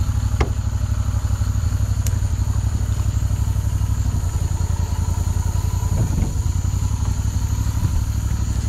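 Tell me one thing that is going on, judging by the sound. A boat motor rumbles steadily at low pitch.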